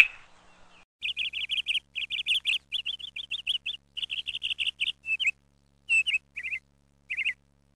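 An owl gives rapid, chattering calls.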